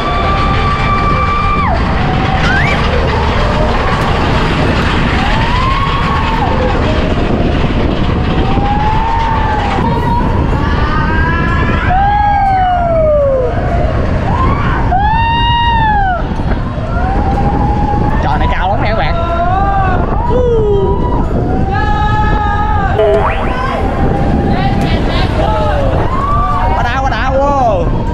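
Wind roars loudly over the microphone.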